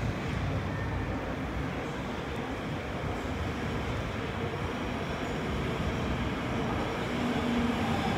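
A train approaches from a distance with a low, growing rumble.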